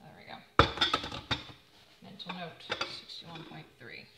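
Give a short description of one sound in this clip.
A metal lid clinks onto a pot.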